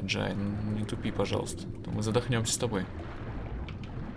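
Water swishes as arms stroke underwater.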